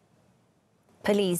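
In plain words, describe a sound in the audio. A woman speaks calmly and clearly into a microphone, like a news presenter.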